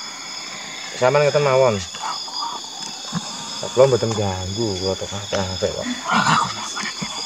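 A young man speaks up close in a low, animated voice.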